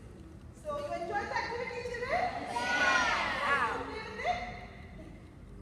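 A woman speaks with animation in a large echoing hall.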